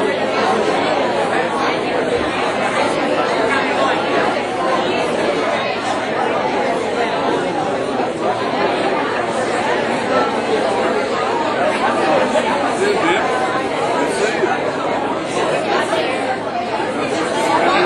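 A crowd of elderly men and women chatter loudly all around in a large room.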